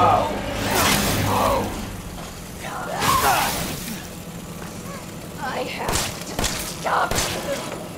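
A woman speaks tensely in a game's voice track.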